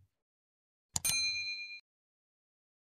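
A small bell chimes and fades.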